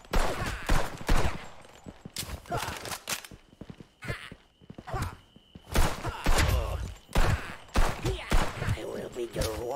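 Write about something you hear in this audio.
Pistol shots crack loudly in bursts.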